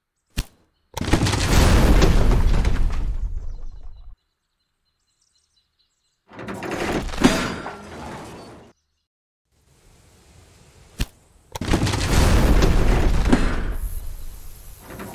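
A deep rumbling crash, like track being torn up, plays in bursts.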